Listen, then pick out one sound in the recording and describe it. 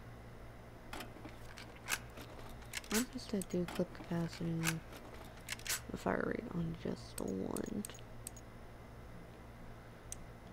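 Short electronic clicks and chimes sound as menu options are picked.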